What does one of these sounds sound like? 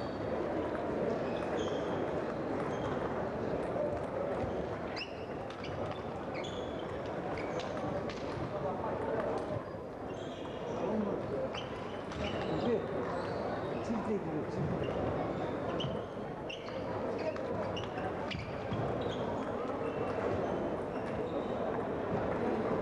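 Ping-pong balls tap sharply on tables all around a large echoing hall.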